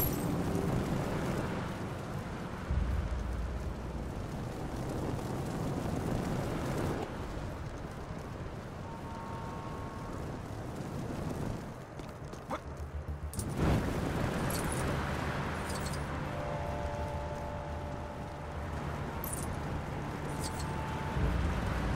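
Flames roar and whoosh steadily as a burning figure flies along.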